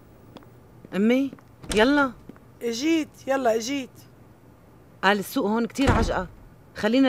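A woman speaks tensely close by.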